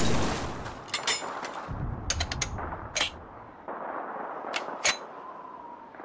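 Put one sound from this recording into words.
Metal clicks and clacks as a rifle is reloaded.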